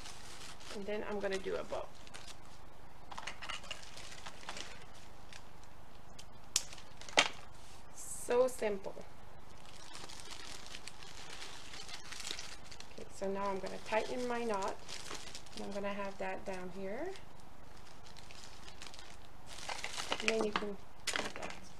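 Cellophane wrap crinkles and rustles as hands handle it.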